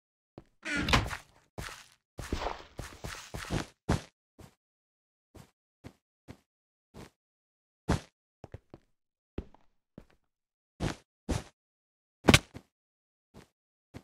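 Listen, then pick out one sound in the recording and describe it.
Blocks thud softly as they are placed in a video game, one after another.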